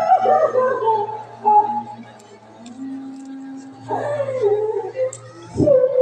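A man sings with feeling through a loudspeaker.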